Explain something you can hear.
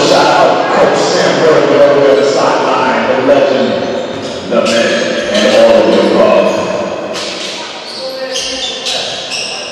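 Young people shout and chatter loudly in a large echoing hall.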